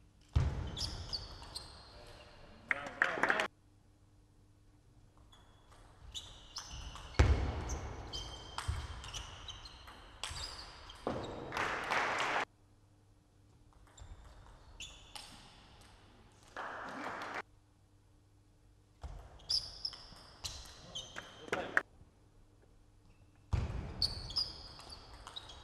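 A ping-pong ball clicks back and forth in a quick rally, echoing in a large hall.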